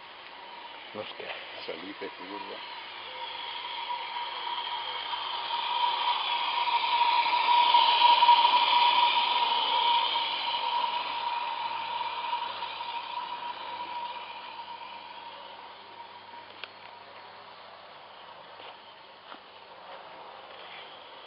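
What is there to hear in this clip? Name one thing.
A small model train rattles along metal rails, growing louder as it passes close and then fading away.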